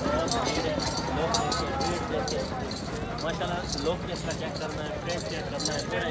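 Cattle hooves shuffle on dry straw.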